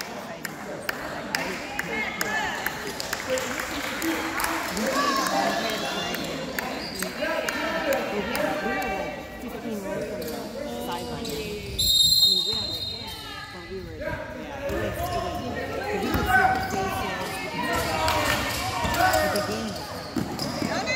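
A basketball thumps as it bounces on a wooden floor.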